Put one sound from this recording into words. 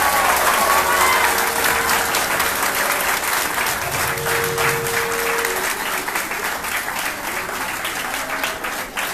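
A crowd claps along in a steady rhythm.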